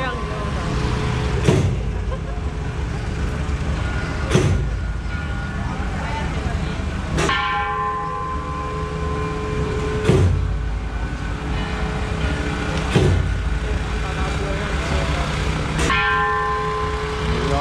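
A truck engine rumbles as the truck drives slowly past.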